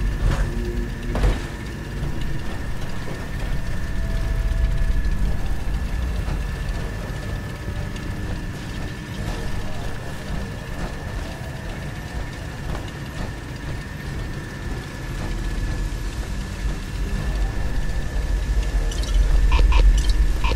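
Heavy metallic footsteps thud steadily on a hard floor.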